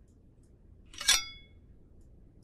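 A metal crowbar clinks as it is picked up.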